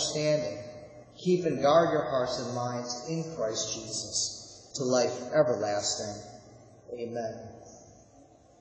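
A middle-aged man speaks calmly into a microphone in a large echoing hall.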